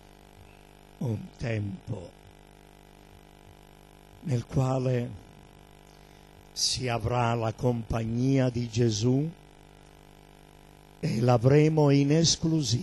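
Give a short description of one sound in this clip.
A middle-aged man speaks with feeling into a microphone, in bursts with pauses.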